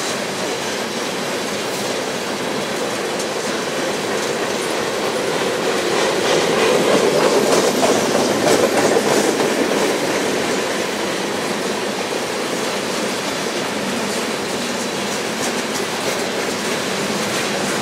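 A long freight train rumbles past close by, its wheels clacking steadily on the rails.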